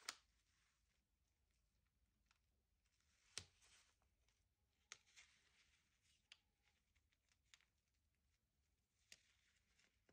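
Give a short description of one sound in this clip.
Paper rustles and crinkles as hands handle paper sheets.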